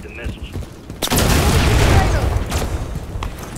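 A loud explosion booms and rumbles close by.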